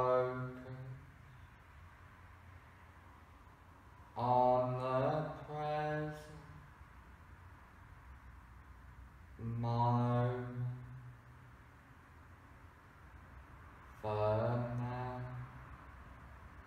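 A man speaks calmly and slowly, close by, in short phrases with long pauses.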